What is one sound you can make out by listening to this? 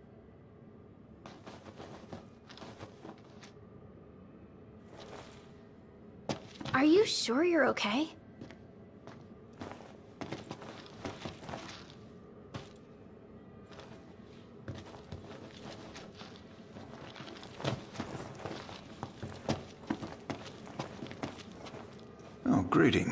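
Footsteps tap across a hard tiled floor.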